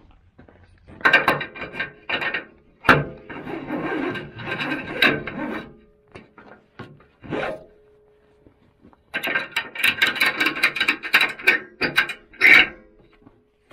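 A ratchet strap rattles and clicks as it is pulled.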